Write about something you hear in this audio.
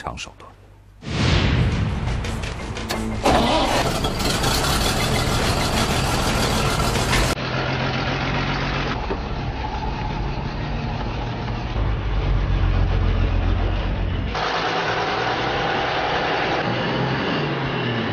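A truck engine starts and rumbles loudly.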